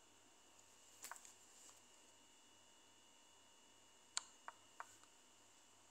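Chess pieces click softly as moves are played.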